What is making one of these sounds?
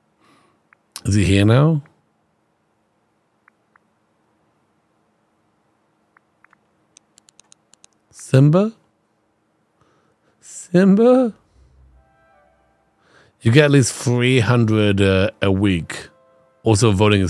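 A man talks into a close microphone in short, lively bursts.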